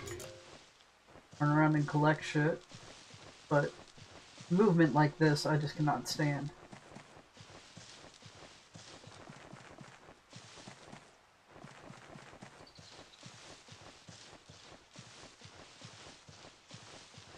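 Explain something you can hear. Soft footsteps patter on grass.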